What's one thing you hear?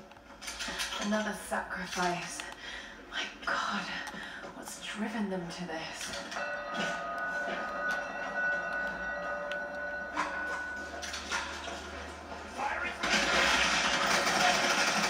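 Video game sounds play from a television nearby.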